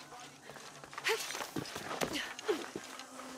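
Hands scrape and scramble over rough rock.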